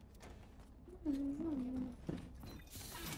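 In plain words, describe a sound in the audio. A young woman speaks casually into a nearby microphone.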